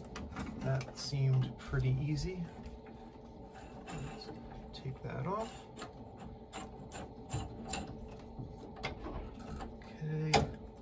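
Metal fittings click and tap under handling.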